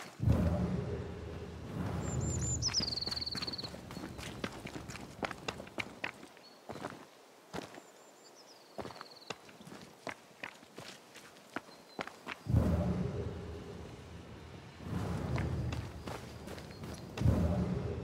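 Footsteps crunch quickly over gravel and stones.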